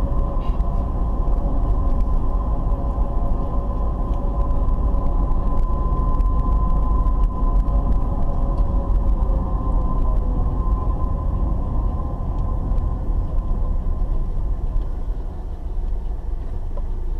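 Tyres rumble over a rough road.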